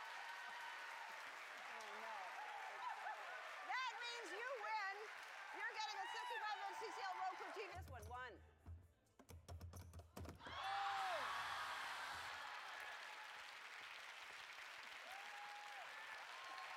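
A young woman screams and laughs excitedly.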